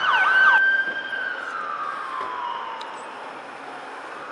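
A siren wails close by and falls away in pitch.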